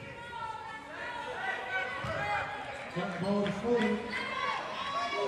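A crowd of people shouts and cheers in a large echoing hall.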